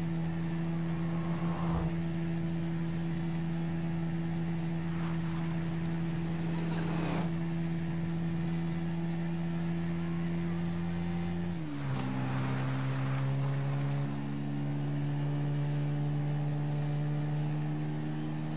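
A quad bike engine drones while cruising at speed.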